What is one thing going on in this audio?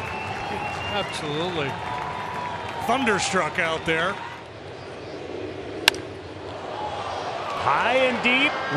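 A large crowd cheers and murmurs in a stadium.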